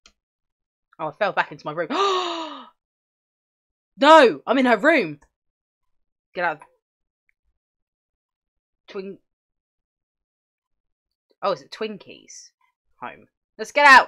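A young woman talks with animation, close to a microphone, in short bursts.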